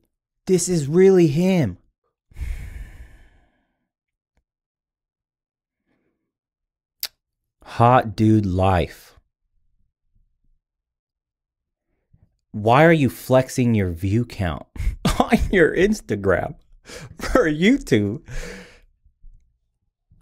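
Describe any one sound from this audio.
A young man talks with animation close to a microphone, in bursts with pauses.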